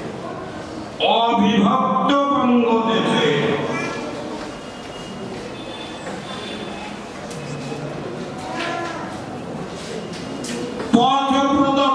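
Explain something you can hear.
An elderly man speaks through a microphone and loudspeakers, in pauses and bursts.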